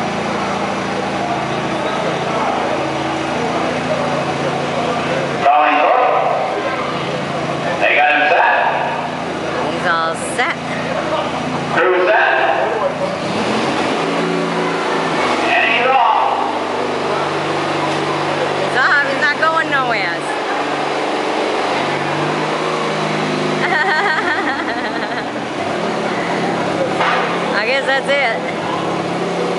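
A small engine idles steadily nearby.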